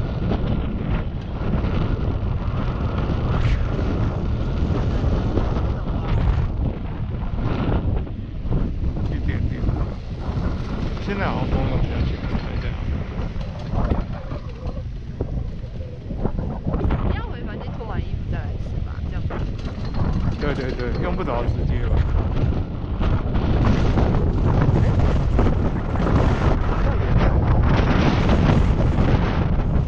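Skis glide and scrape over snow.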